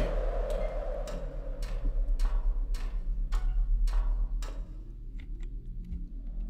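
Footsteps clank on a metal ladder.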